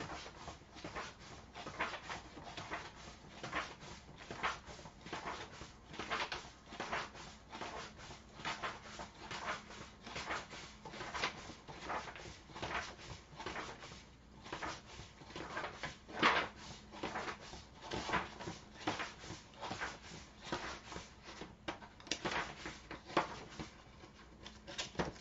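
Book pages riffle and flutter as they are flipped quickly.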